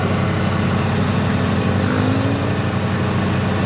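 A heavy machine's engine revs up briefly.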